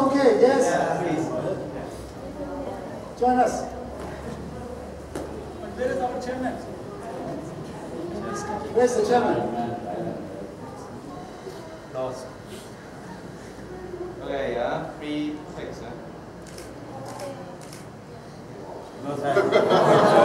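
A large group murmurs and chatters quietly in an echoing hall.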